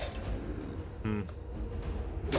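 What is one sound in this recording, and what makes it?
A monster lets out a hoarse, growling groan.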